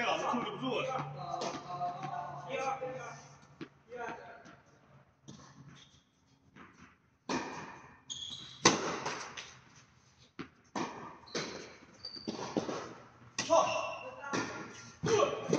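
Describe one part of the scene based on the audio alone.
A tennis racket strikes a ball with sharp pops that echo in a large hall.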